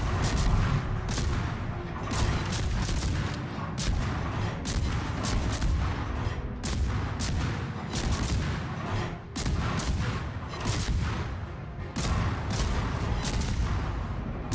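Heavy naval guns fire in repeated booming blasts.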